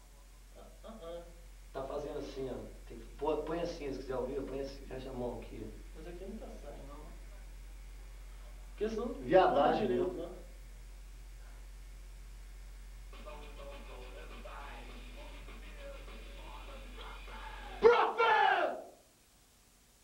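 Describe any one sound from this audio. Several young men sing together into a microphone.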